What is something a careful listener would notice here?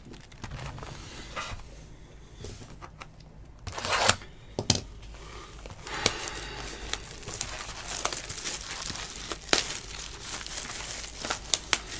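Cards slide and tap against each other.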